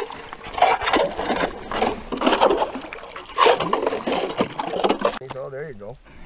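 A scoop scrapes and sloshes through icy slush.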